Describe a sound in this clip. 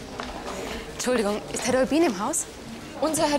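A middle-aged woman speaks warmly.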